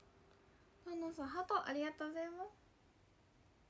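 A young woman speaks brightly close to a microphone.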